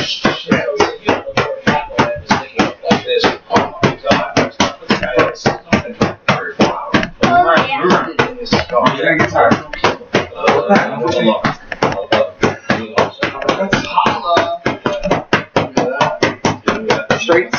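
Boxing gloves thump rapidly against punch mitts.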